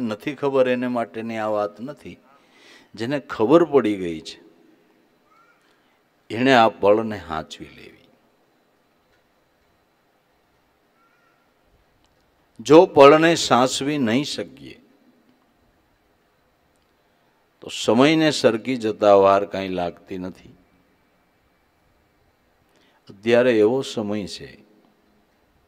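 An elderly man sings slow, drawn-out phrases into a microphone, with long pauses between them.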